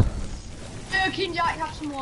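A pickaxe strikes a wall with sharp knocks.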